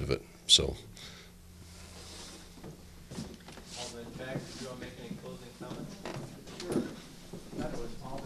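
A man speaks through a microphone in a hall.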